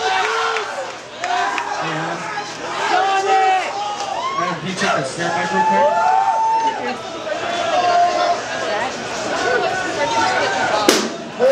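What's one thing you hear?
A crowd of young men shouts and cheers close by.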